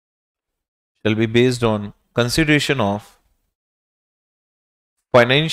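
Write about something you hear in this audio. A man lectures calmly into a close microphone, in short bursts with pauses.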